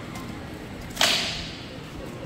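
A rattan sword strikes a shield with a sharp crack.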